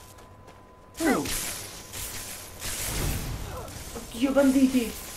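Lightning crackles and hisses.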